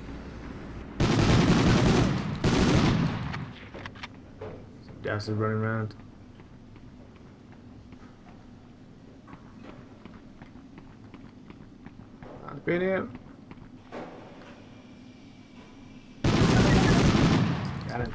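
A submachine gun fires loud rapid bursts.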